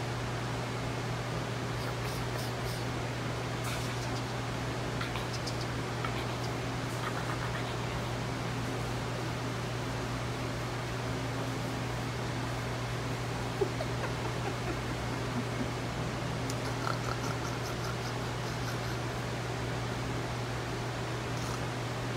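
A small dog wriggles and rolls on a blanket.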